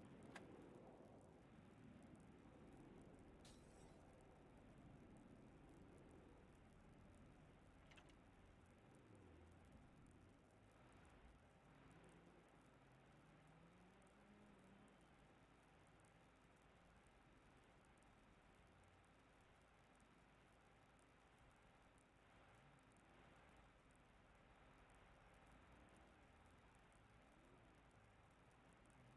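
A man speaks quietly into a microphone.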